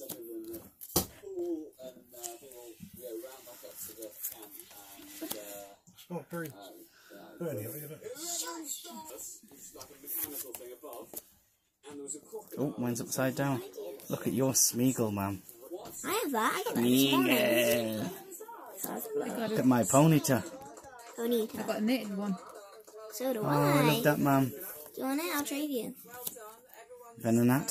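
Trading cards slap and slide onto a hard table.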